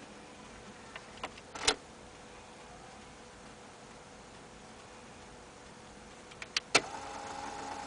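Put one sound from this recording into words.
Buttons on a tape deck click as a finger presses them.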